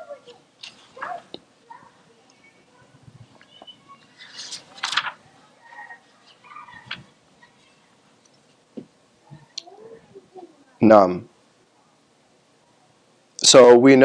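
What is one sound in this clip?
A man speaks quietly and slowly into a microphone, in short phrases with pauses.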